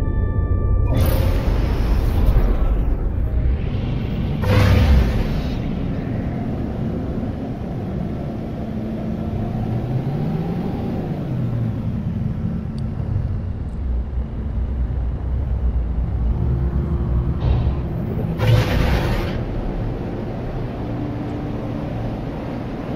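A spaceship engine rumbles steadily in flight.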